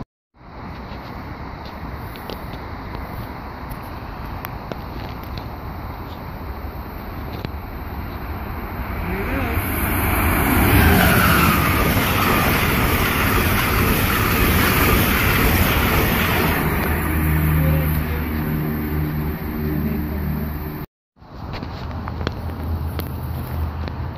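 A train rumbles closer and roars loudly past on the rails.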